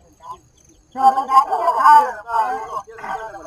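A man speaks louder and with animation, close by.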